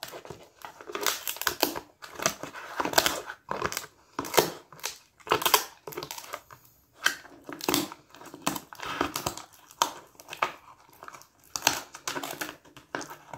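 A dog chews and gnaws noisily on a chew close by, with wet crunching bursts.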